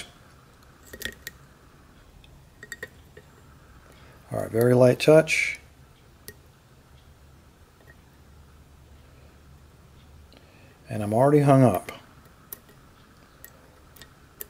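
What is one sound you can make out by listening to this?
A lock pick clicks softly against the pins inside a pin tumbler lock cylinder.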